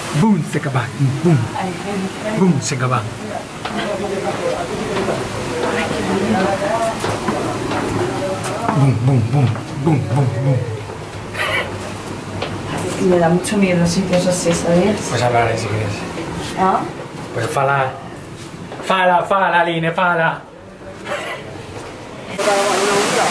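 A man talks with animation close by, his voice echoing.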